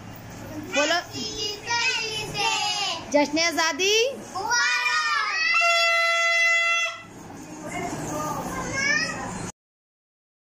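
Children shout and cheer excitedly close by.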